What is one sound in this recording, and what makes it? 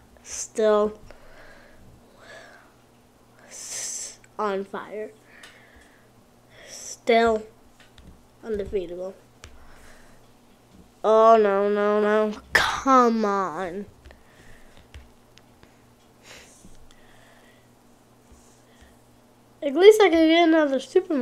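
A young boy talks with animation close to a microphone.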